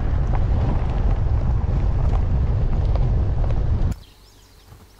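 A vehicle rumbles along a dirt track.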